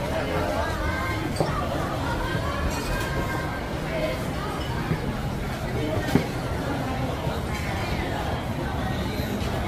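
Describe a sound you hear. A crowd of people chatter all around in a large echoing hall.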